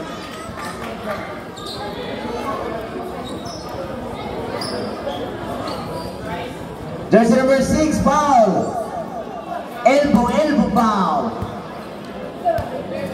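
A crowd of spectators chatters and murmurs in the background.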